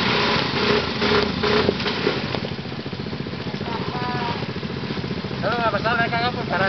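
A quad bike engine chugs and rumbles up close.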